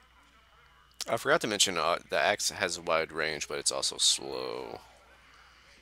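A man's voice speaks through a crackling radio.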